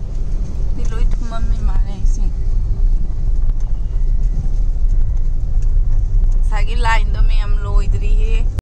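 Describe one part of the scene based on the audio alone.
A car engine rumbles low and steady, heard from inside the car.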